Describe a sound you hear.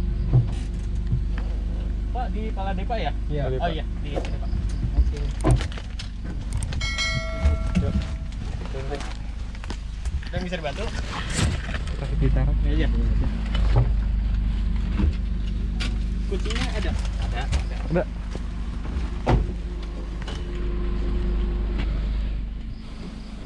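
A small vehicle's engine rumbles steadily as it rides along.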